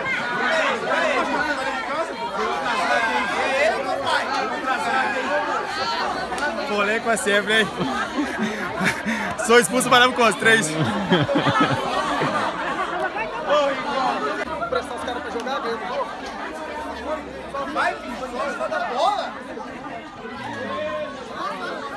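A crowd of spectators chatters and shouts close by.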